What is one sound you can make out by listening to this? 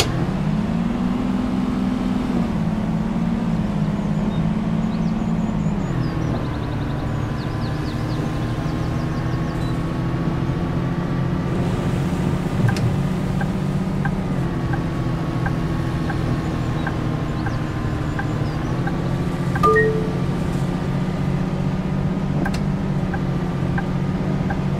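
A bus engine hums steadily, its pitch shifting as the bus changes speed.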